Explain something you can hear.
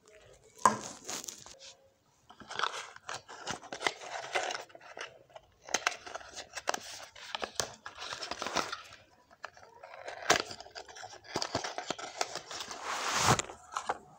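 Plastic wrapping crinkles and rustles close by.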